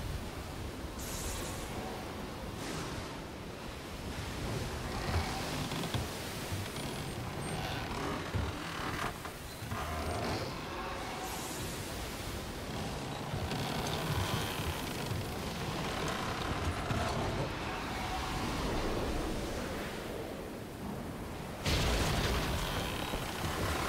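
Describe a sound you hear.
Stormy waves crash and roar.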